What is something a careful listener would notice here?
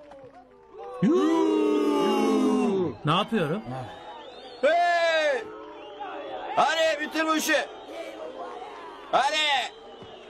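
A crowd of men shouts and jeers loudly.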